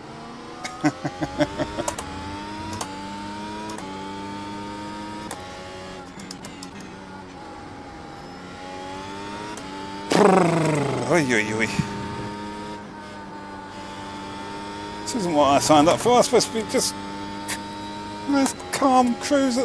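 A racing car engine whines steadily, rising and falling in pitch through gear changes.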